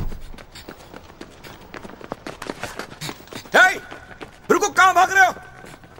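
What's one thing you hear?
Footsteps run fast on pavement.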